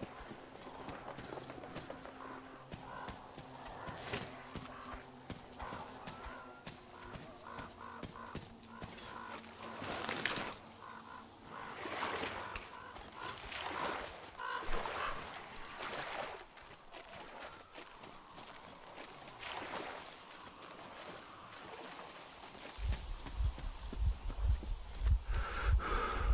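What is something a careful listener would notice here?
Footsteps crunch steadily on gravel and snow.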